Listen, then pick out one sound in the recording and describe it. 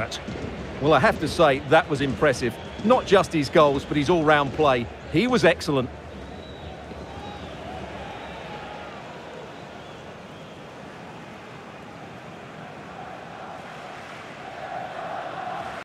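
A large stadium crowd murmurs and cheers in the distance.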